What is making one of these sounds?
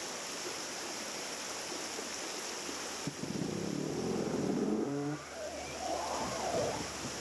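A river rushes over rocks nearby.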